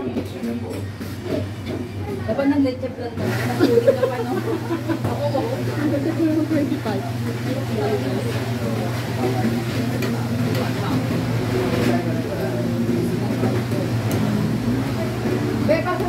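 Women chatter and laugh nearby.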